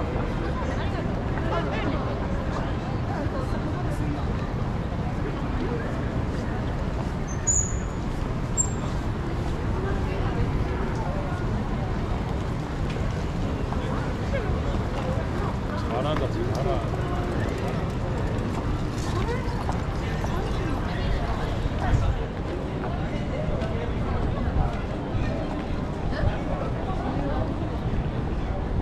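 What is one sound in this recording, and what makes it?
Footsteps shuffle on pavement in a busy street.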